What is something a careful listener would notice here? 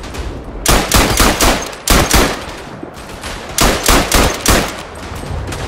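A machine gun fires loud, short bursts.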